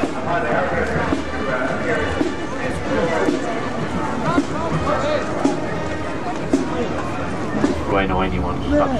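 A marching band plays brass instruments outdoors.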